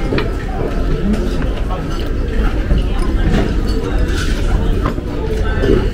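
Chopsticks clink against a plate.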